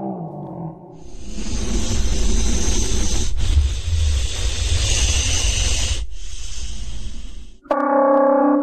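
A creature lets out a long, deep, rumbling roar.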